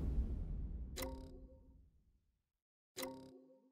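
A game menu chimes softly as a window pops up.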